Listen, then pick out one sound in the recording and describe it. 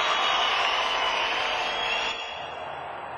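Loud rock music plays with distorted electric guitar, then cuts off.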